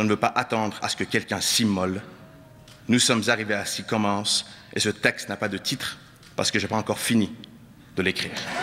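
A man speaks slowly and earnestly into a microphone in a large hall.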